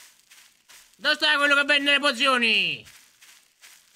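A man calls out loudly in a drawn-out, sing-song voice close to a microphone.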